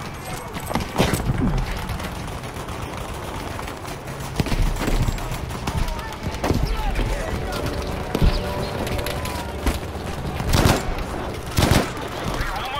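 Rifle shots crack nearby.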